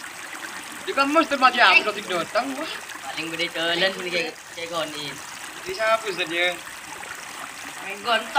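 Several teenage boys talk and laugh together nearby.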